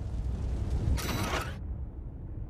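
A short electronic chime sounds as a menu opens.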